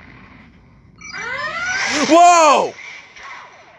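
A spaceship speeds up with swooping electronic tones.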